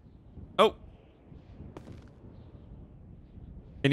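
A wooden door swings shut.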